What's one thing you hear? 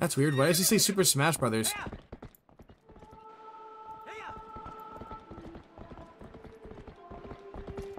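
A horse gallops, its hooves thudding on the ground.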